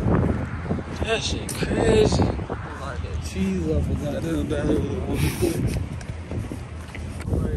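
A young man talks excitedly and laughs close to a microphone.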